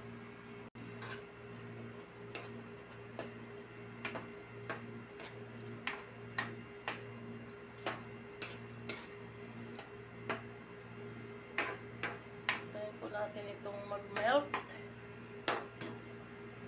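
A metal spoon scrapes and clinks against a pan while stirring.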